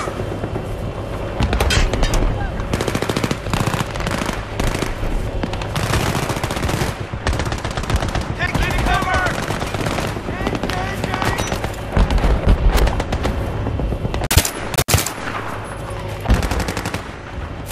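Rifle shots crack in quick bursts, near and far.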